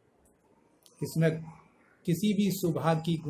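A middle-aged man speaks calmly and close to a microphone.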